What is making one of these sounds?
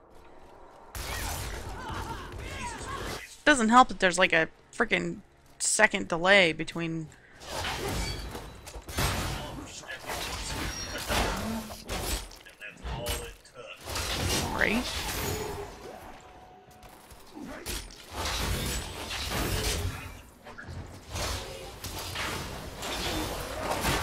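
Spells and blows crash in a game's battle.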